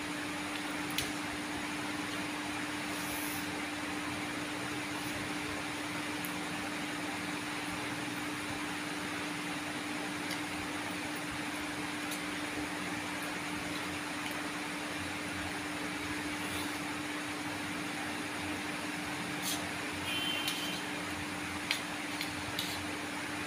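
A fork scrapes against a plate.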